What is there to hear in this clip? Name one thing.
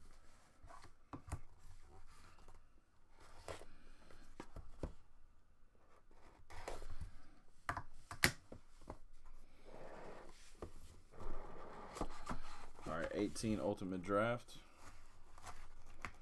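Cardboard packaging rustles and scrapes in hands.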